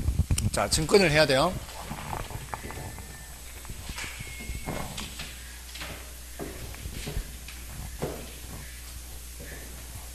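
A board eraser rubs across a chalkboard.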